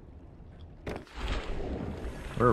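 Water rushes and bubbles.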